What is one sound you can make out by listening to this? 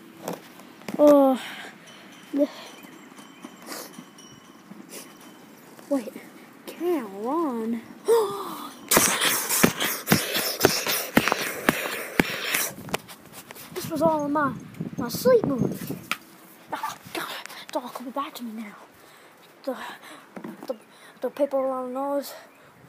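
A young boy talks close to the microphone in short, lively bursts.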